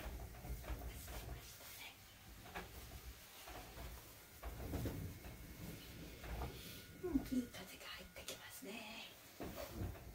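Fabric rustles softly close by.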